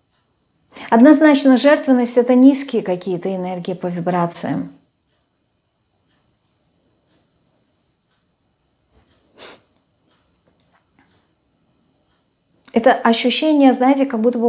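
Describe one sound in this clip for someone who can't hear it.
A woman speaks calmly and clearly into a close microphone, pausing in between.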